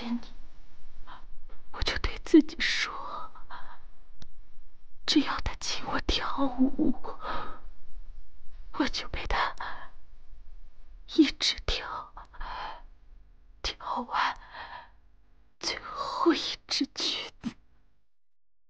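A young woman speaks softly and close by.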